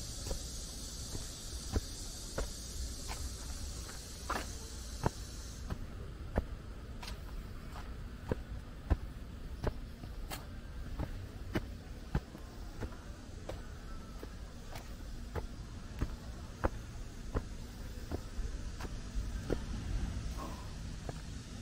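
Footsteps climb stone steps at a steady pace outdoors.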